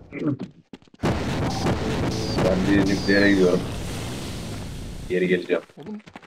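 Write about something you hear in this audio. A weapon fires a crackling energy beam.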